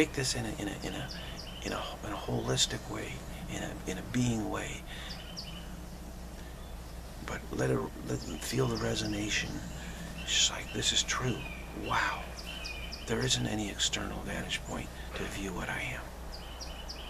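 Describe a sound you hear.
An older man talks calmly close to a microphone, with pauses.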